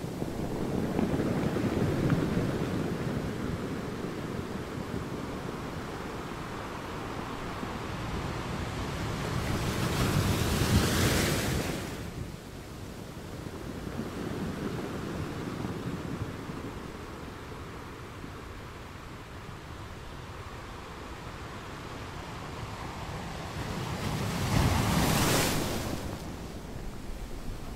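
Water washes and swirls over rocks nearby.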